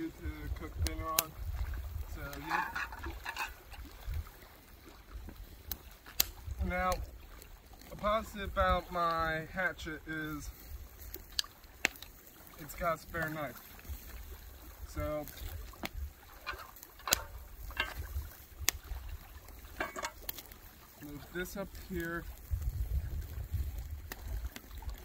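A small wood fire crackles.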